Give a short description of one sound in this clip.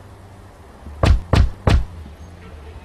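Knuckles knock three times on a wooden door.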